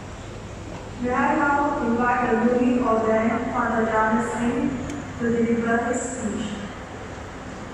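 A woman sings a short phrase through a microphone in a large echoing hall.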